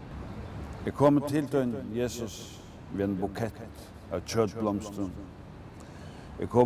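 A man reads aloud calmly into a microphone outdoors.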